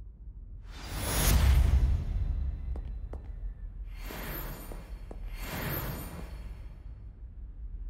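A bright magical shimmer and chime sound in bursts.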